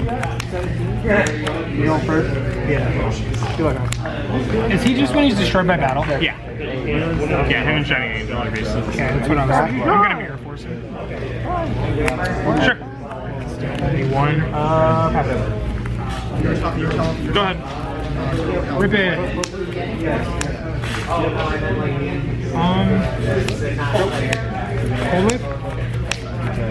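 Playing cards are placed and slid onto a soft mat with light taps.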